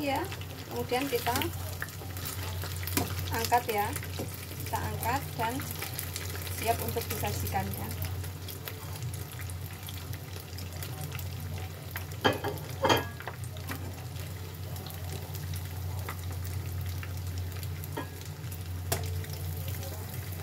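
Metal tongs tap and scrape against a pan.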